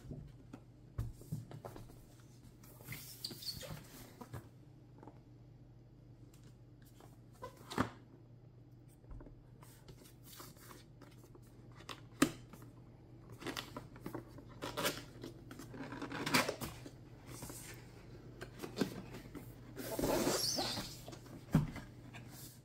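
A cardboard box taps and knocks as hands handle it.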